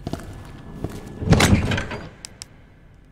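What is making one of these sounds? A heavy wooden chest creaks open.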